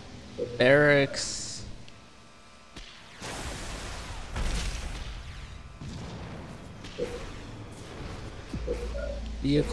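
Short electronic chimes sound as a game menu is used.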